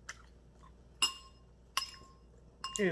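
A fork clinks against a glass bowl.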